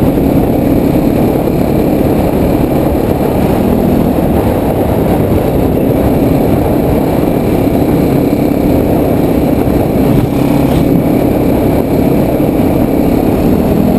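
Wind buffets loudly, as if heard on the move outdoors.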